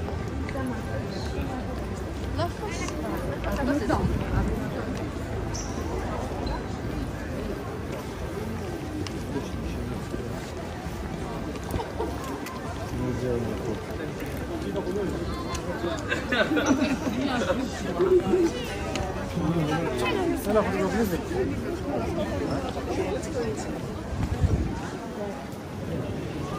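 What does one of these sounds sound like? A crowd of people murmurs and talks outdoors.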